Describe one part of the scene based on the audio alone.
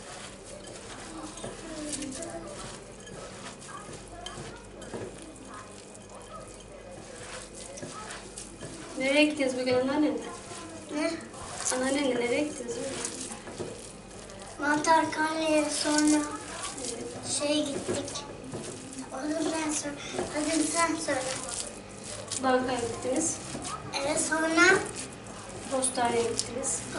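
Hands squelch as they mix food in a glass bowl.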